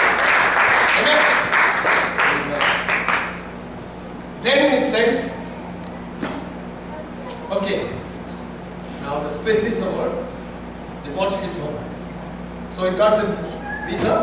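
A man speaks through a microphone in an echoing hall, in slow phrases with pauses.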